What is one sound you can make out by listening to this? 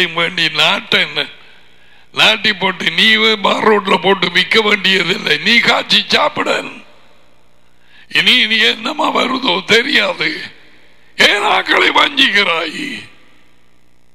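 An elderly man speaks with animation into a headset microphone.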